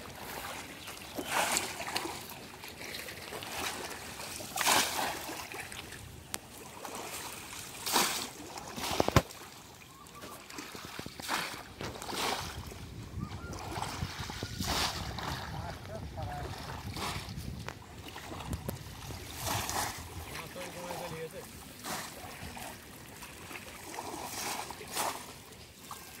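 Water sloshes around people wading through a shallow pond.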